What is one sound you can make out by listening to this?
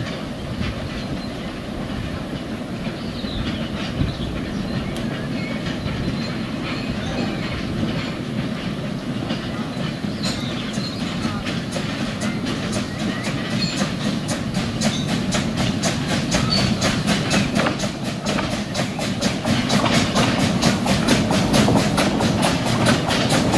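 A small steam locomotive chugs slowly closer, growing louder.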